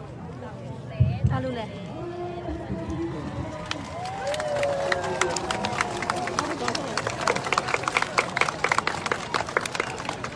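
A crowd of men and women chants and shouts outdoors.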